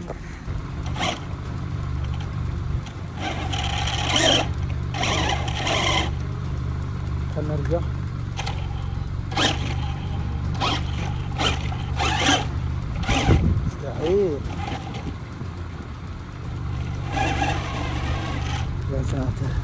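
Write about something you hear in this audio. A toy car's electric motor whirs in short bursts.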